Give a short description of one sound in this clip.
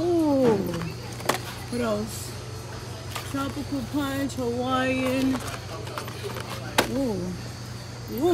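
Cardboard boxes rattle and knock as a hand picks them up from a shelf.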